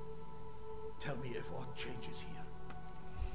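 An elderly man speaks quietly.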